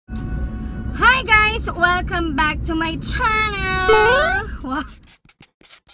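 A young woman sings loudly and playfully close by.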